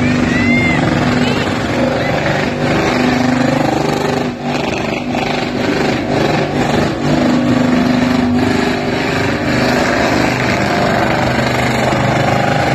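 Tyres screech and squeal as they spin on pavement.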